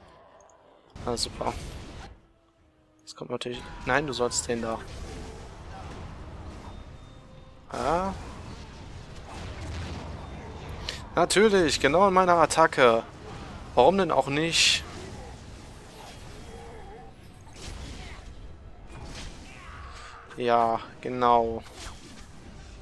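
Magic blasts whoosh and burst during a fight.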